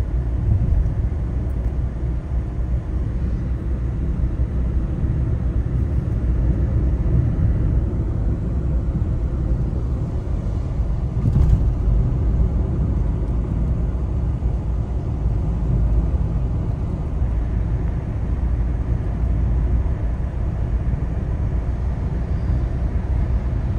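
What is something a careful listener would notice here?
A car's engine and tyres rumble steadily from inside as it drives along a road.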